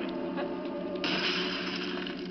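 Glass shatters and crashes loudly.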